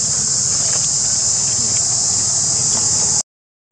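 A monkey walks softly over dirt and small stones.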